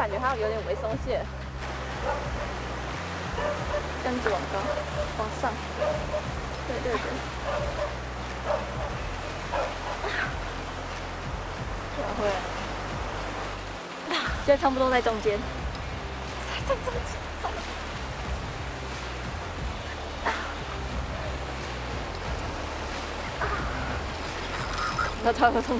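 A young woman talks calmly nearby.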